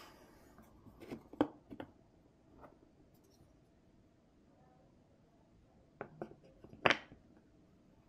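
Wooden puzzle pieces knock and clack against a wooden board.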